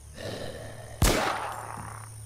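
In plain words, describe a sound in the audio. A single loud gunshot rings out.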